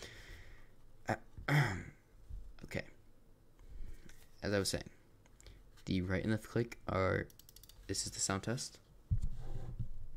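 A computer mouse slides and bumps on a desk.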